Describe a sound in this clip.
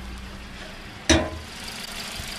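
A car hood thuds as it is lifted open.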